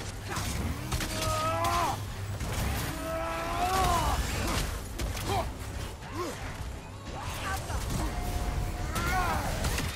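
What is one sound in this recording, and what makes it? Weapons clash and strike with heavy impacts.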